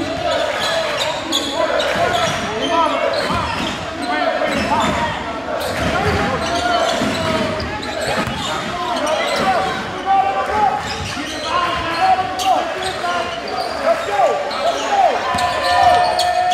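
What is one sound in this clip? A crowd of spectators chatters and cheers in an echoing gym.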